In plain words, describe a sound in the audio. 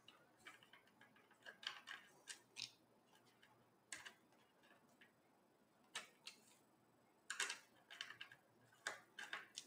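A screwdriver clicks and scrapes against small screws.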